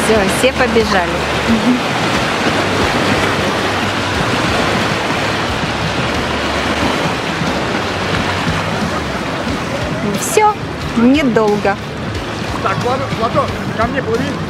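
Small waves wash onto a pebbly shore.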